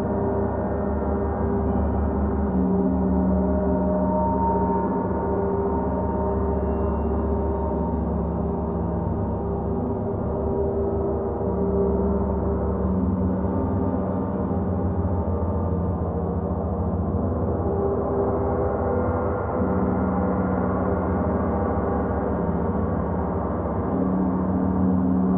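Large gongs hum and shimmer with a deep, steady, swelling drone.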